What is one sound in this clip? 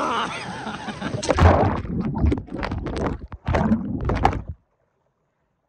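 A young man shouts and laughs excitedly close by.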